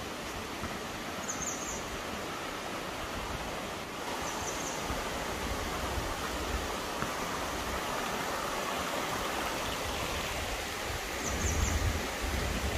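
Water rushes steadily over rocks.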